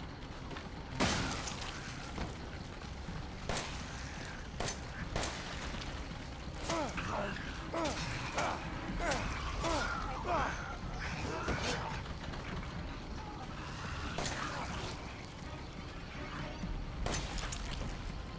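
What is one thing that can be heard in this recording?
Pistol shots ring out.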